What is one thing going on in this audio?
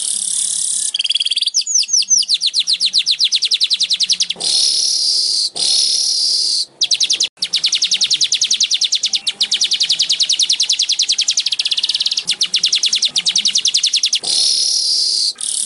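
A small bird sings close by in fast, high, buzzing trills broken by short harsh hisses.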